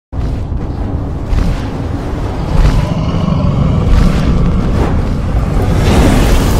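A huge winged creature's wings beat with deep, heavy whooshes.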